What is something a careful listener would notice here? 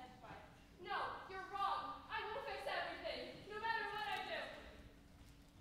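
A young actor speaks loudly, heard from a distance in a large echoing hall.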